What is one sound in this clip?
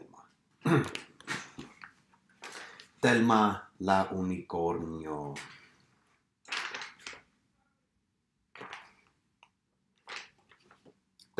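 Paper pages rustle as a book is turned.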